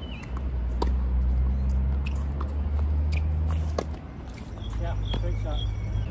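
A tennis ball is struck by rackets with sharp pops, back and forth.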